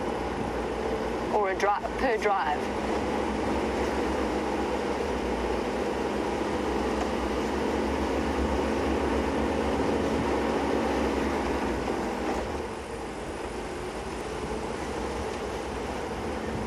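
Tyres crunch and rumble over a dirt road.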